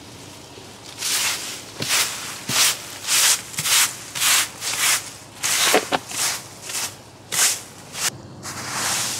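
A broom sweeps in quick, rhythmic strokes over leaves and soil.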